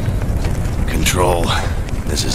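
A man speaks into a radio in a low, gruff voice.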